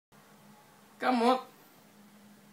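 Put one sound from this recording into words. A man lets out a loud, playful cry close by.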